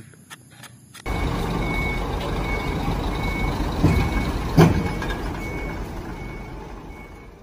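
A diesel concrete mixer truck engine rumbles.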